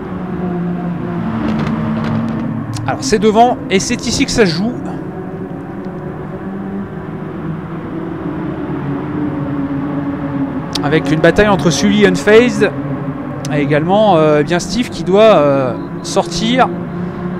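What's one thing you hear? Racing car engines roar steadily, rising and falling in pitch.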